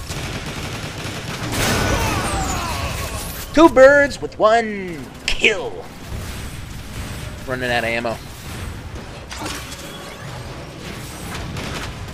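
A robot fires a blaster gun in rapid bursts.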